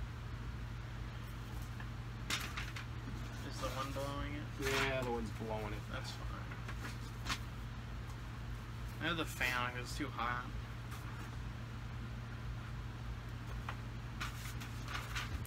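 Magazine pages rustle as they are handled.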